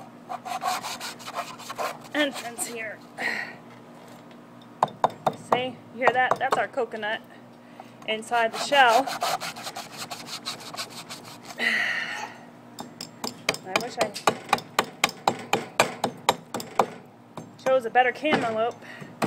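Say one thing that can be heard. A machete chops repeatedly into a coconut husk with sharp thwacks.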